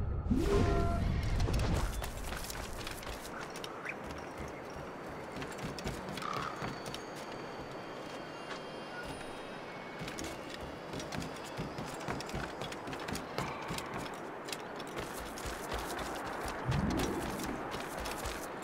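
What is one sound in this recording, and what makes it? Footsteps thud on grass and wooden planks.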